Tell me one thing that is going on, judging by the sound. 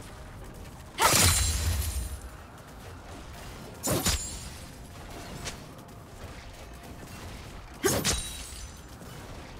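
Magic blasts and hits burst loudly in a video game battle.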